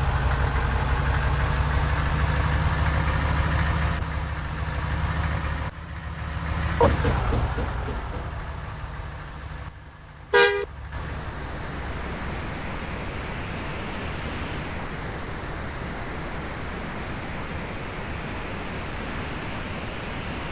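A bus engine rumbles low and steady, with a whine that slowly rises.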